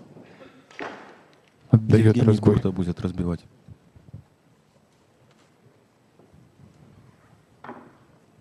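Pool balls click together as they are gathered into a rack.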